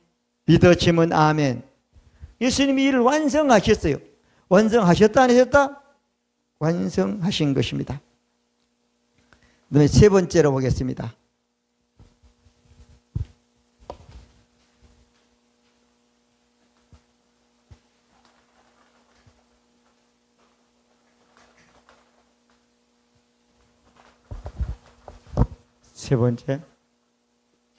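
An elderly man speaks calmly through a microphone in an echoing room.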